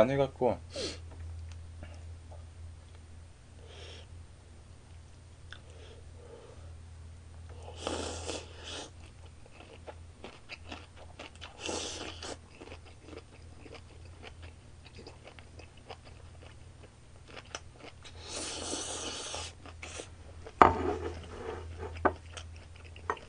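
A young man speaks briefly and casually, close to the microphone.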